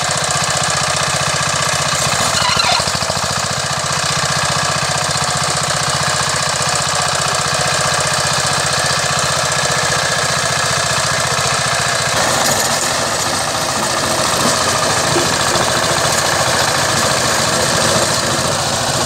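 A two-wheel tractor engine chugs steadily and loudly nearby.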